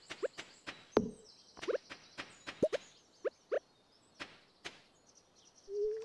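A hoe thuds into soil with sharp knocks.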